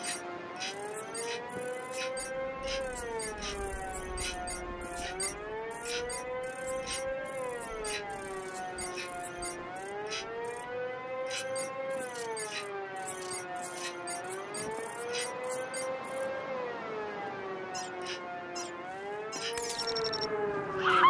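An electronic device beeps in short quick pips.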